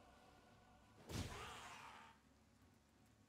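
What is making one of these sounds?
A magic blast bursts with a rushing whoosh.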